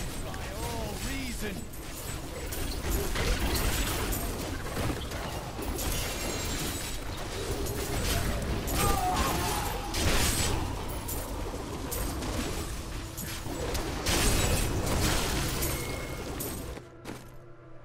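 Spells crackle and explode in quick succession.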